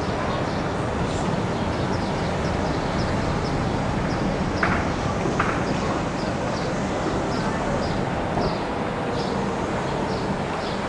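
Wind blusters steadily outdoors.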